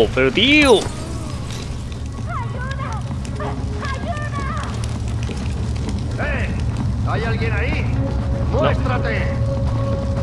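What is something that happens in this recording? Fire crackles and burns.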